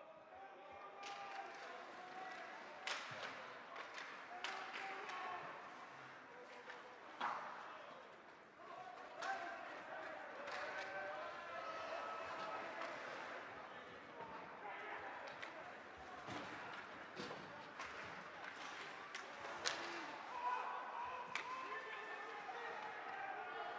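Skates scrape and hiss on the ice.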